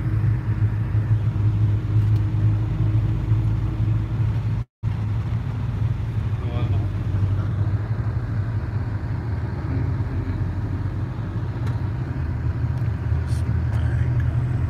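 A vehicle engine rumbles low and steady from inside the cab.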